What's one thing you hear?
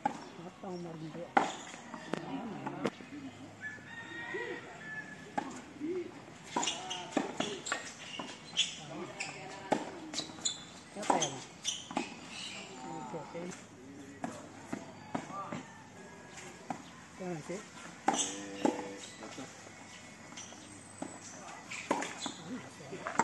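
Tennis rackets strike a ball outdoors.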